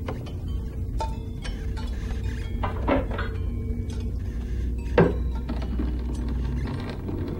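An electric fan hums steadily nearby.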